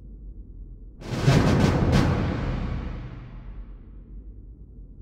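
A deep game sound effect booms and slowly fades.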